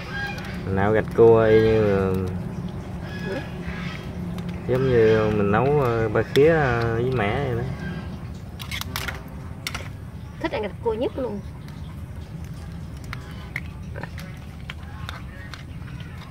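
A spoon scrapes and clicks against a crab shell.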